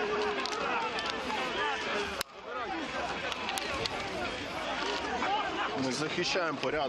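A large crowd shouts and clamours outdoors.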